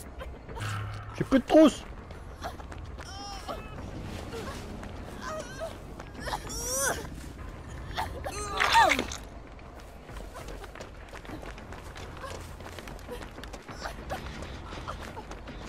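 Footsteps run quickly through grass and over ground.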